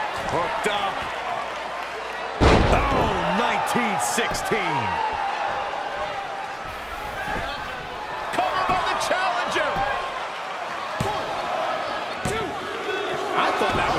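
A crowd cheers and whistles in a large arena.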